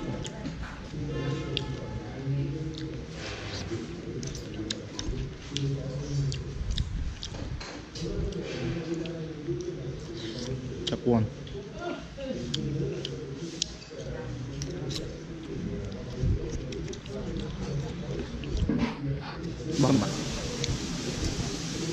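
A spoon and fork clink and scrape against a bowl.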